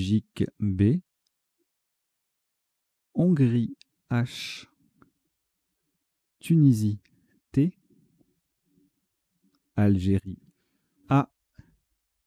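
A man speaks calmly into a microphone in short bursts.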